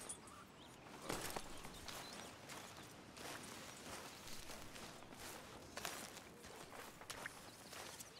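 A man's footsteps crunch through grass.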